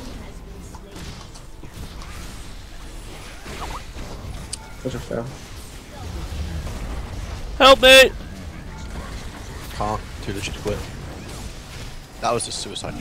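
Magic blasts and zaps crackle in a fast fight.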